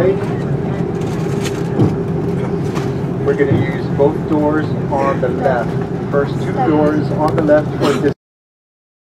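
Jet engines roar steadily as an airliner taxis.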